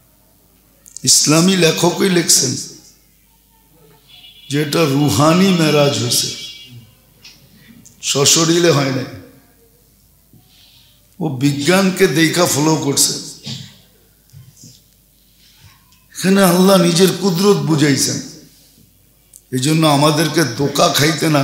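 A middle-aged man preaches with animation into a microphone, in short bursts with pauses between them.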